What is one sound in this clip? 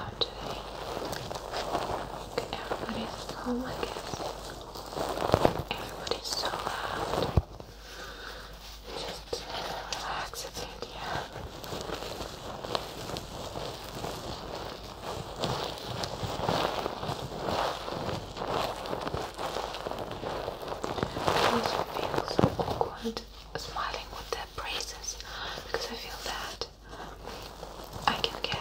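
A small plastic toy rustles and crinkles close by.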